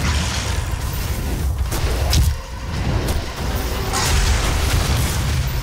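Energy blasts explode with crackling bursts.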